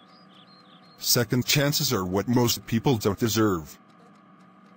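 A man speaks calmly in a flat, computer-made voice.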